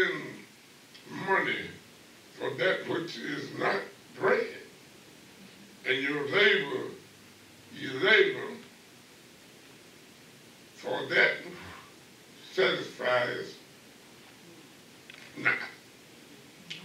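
An elderly man preaches slowly through a microphone, with pauses between phrases.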